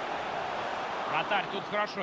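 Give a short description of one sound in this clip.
A ball is struck hard by a kick.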